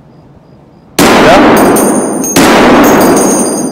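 Rapid gunfire blasts loudly and close.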